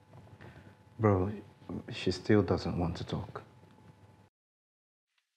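A man speaks on a phone in a calm, low voice, close by.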